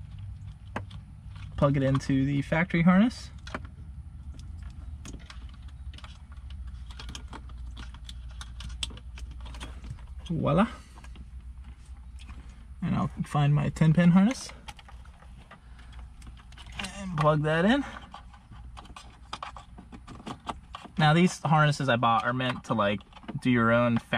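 Plastic parts and wire connectors click and rattle as they are handled.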